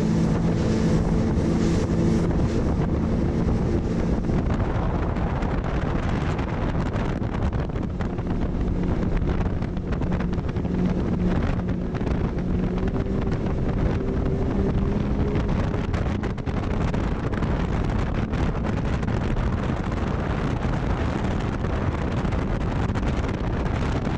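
A boat's outboard engine roars steadily.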